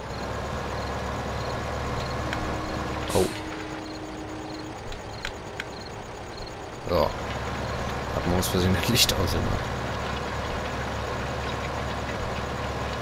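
A tractor engine drones while pulling a cultivator.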